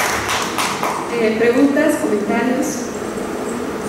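A woman speaks through a microphone and loudspeakers in a large echoing hall.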